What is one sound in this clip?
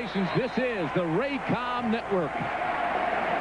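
Young men in a crowd whoop and yell with excitement.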